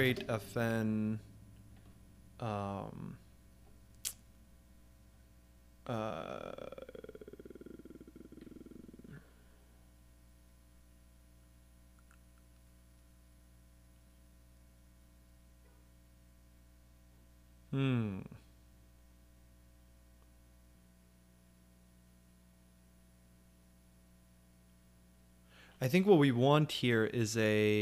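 A young man speaks calmly into a close microphone, with pauses.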